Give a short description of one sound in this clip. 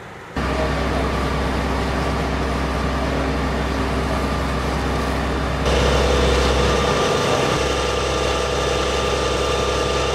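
Water from a fire hose sprays with a steady hiss.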